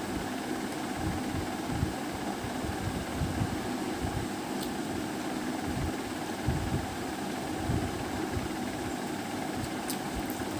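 A young woman chews food with a closed mouth close to a clip-on microphone.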